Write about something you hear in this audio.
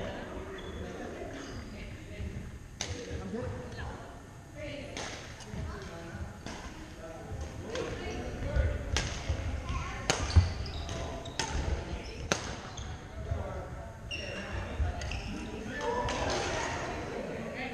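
Sneakers squeak and patter on a wooden floor.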